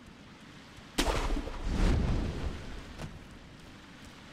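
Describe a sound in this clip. A grappling rope whips and whooshes through the air.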